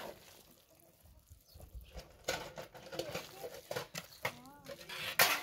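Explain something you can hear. A metal spatula scrapes and clatters against a metal pot.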